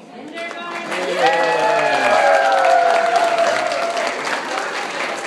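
A group of young children sing together.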